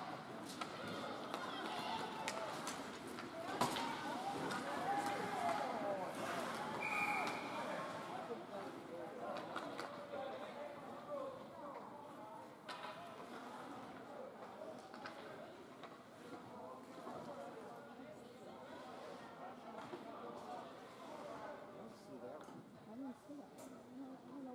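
Ice hockey skates scrape and carve across the ice in an echoing rink.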